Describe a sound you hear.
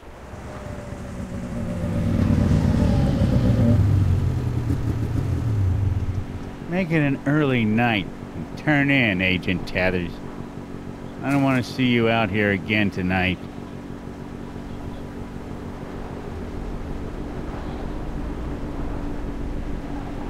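A snowmobile engine idles with a low rumble.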